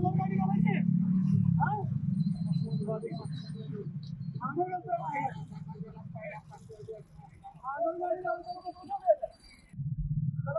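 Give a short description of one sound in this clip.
Several men talk loudly over one another outdoors.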